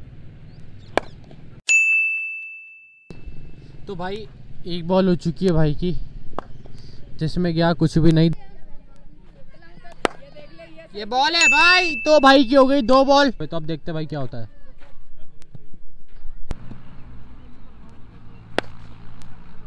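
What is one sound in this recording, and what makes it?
A cricket bat hits a ball with a sharp crack.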